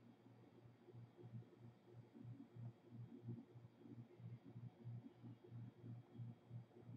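Keys clack softly on a computer keyboard.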